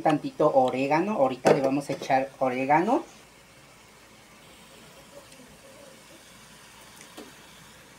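A wooden spatula scrapes and stirs chopped food in a pan.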